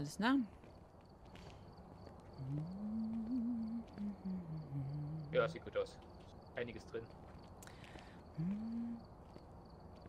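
A woman talks calmly and close into a microphone.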